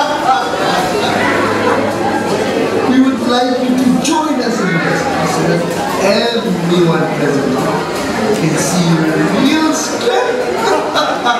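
A young man speaks loudly and with animation into a microphone, heard through loudspeakers in a large room.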